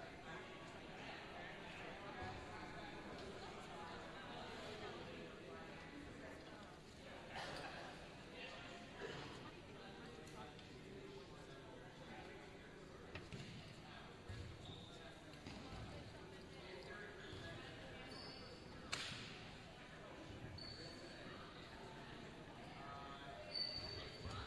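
Many children chatter and call out in a large echoing gym.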